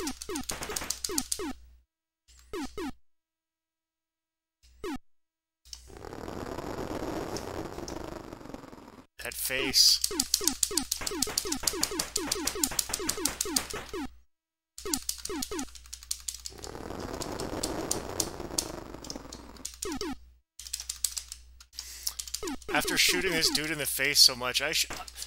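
Rapid electronic laser shots zap over and over.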